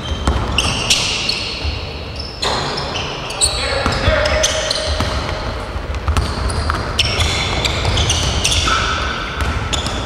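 A basketball thumps on the floor.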